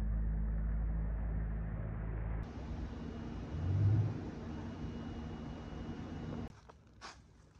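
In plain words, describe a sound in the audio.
Outdoors, wind rumbles against the microphone.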